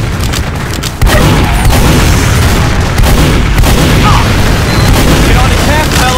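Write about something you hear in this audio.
Shotgun blasts ring out in quick bursts.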